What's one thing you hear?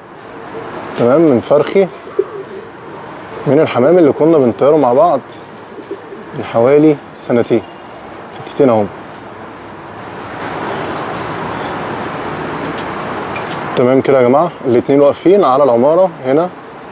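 Pigeons coo nearby in short wavering bursts.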